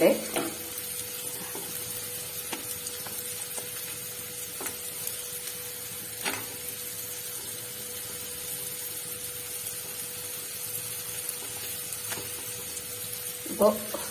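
Flatbreads tap softly against a metal bowl.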